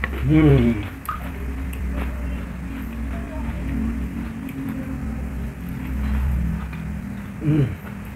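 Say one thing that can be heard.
A young man gnaws and slurps at meat on a bone.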